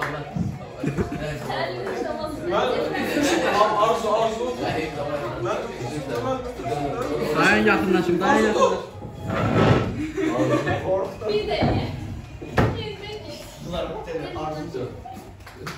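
A group of young men and women sing together, close by.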